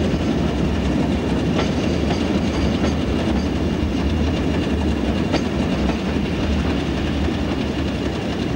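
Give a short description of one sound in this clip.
A diesel locomotive engine drones steadily.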